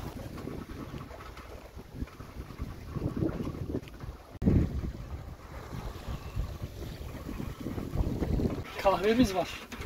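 Sea waves slosh and splash steadily.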